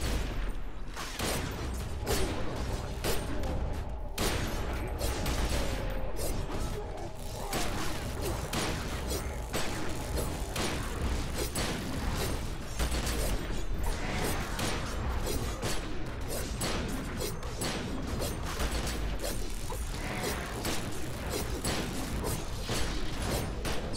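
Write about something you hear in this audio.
Rapid gunfire and blasts boom again and again.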